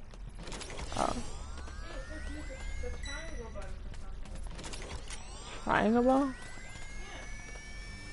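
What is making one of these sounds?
Quick footsteps patter as a game character runs.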